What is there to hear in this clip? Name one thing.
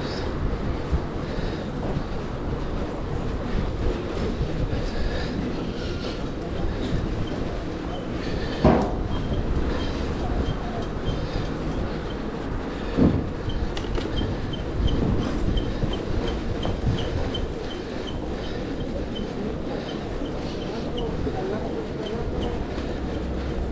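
Bicycle tyres roll over a city street.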